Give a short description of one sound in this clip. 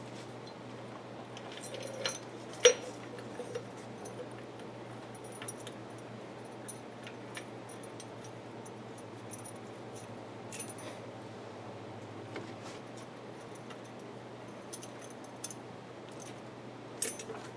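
A pulley clicks and rattles as a hand turns it.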